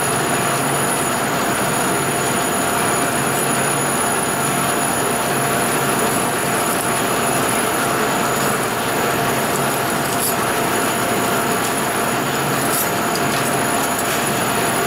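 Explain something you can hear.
A metal lathe spins and hums steadily.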